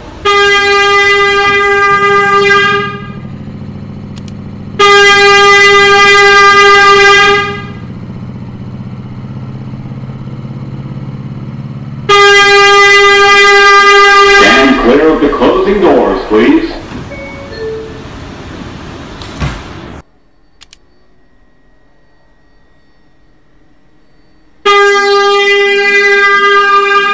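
A train's door chime rings out in loud, repeated tones.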